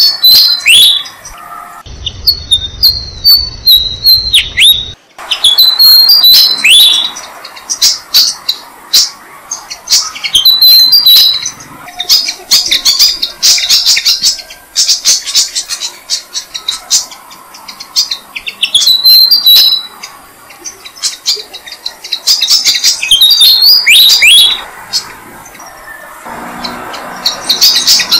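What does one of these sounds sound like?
Nestlings chirp and cheep loudly and rapidly.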